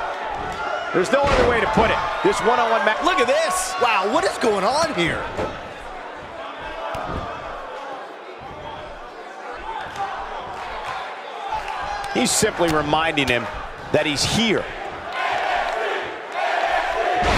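A large crowd cheers and murmurs in an echoing arena.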